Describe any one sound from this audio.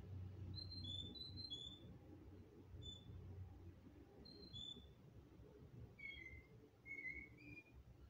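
A small bird chirps and tweets in short high calls.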